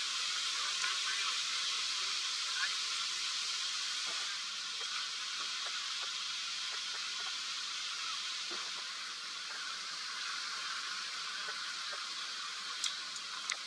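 A waterfall roars steadily nearby.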